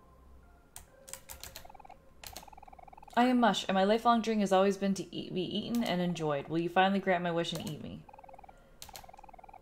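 Short electronic blips tick quickly.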